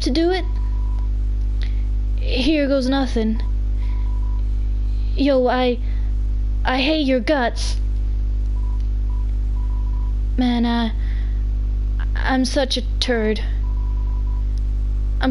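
Short electronic beeps blip in quick runs.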